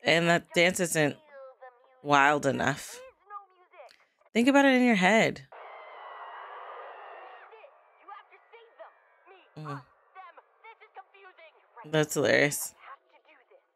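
A young woman speaks with animation, close into a microphone.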